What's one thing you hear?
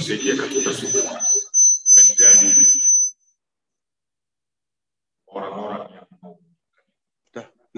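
A middle-aged man speaks calmly into a microphone, heard over an online call.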